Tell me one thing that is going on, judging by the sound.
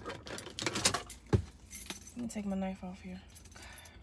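A seatbelt buckle clicks.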